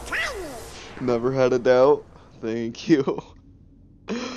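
A cartoon duck character squawks excitedly.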